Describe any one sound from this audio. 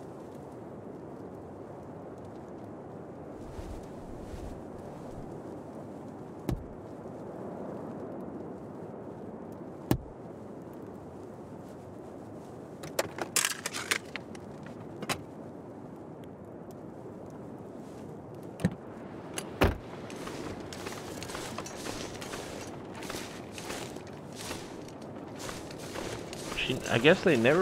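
A torch burns with a steady, soft crackle.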